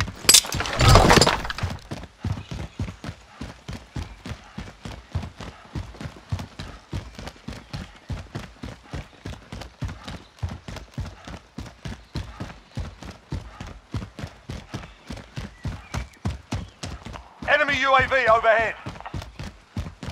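Footsteps run quickly and steadily over hard pavement.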